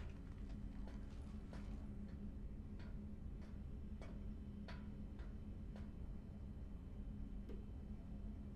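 Heavy boots step on a metal floor at a steady pace.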